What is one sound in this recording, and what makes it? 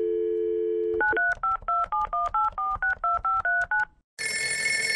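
Phone keypad tones beep quickly as a number is dialled.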